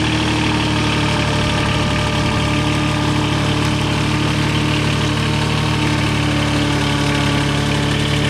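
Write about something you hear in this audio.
A skid steer loader's diesel engine rumbles steadily close by.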